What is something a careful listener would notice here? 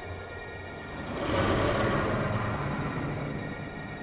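A deep magical rumble swells and fades.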